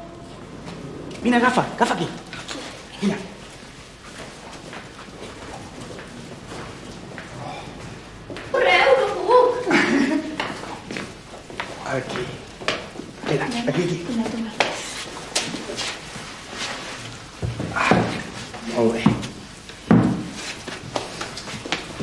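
A boy talks excitedly nearby.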